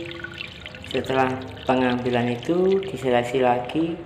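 Water trickles from a pipe into a pond.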